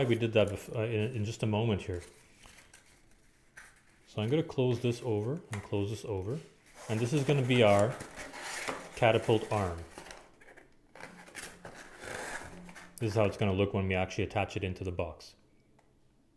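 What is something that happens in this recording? Cardboard is folded and creased by hand.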